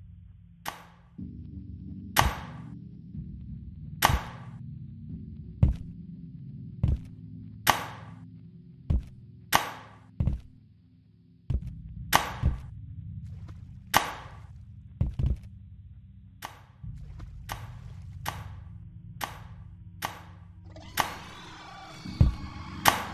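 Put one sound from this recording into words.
A pogo stick bounces with repeated sharp springy thuds.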